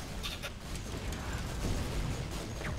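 Energy beams crackle and hum.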